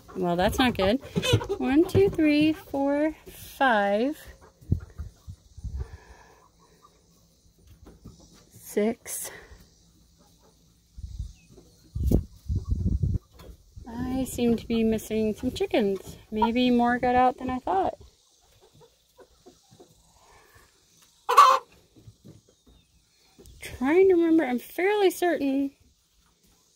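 Chickens cluck and crow loudly close by.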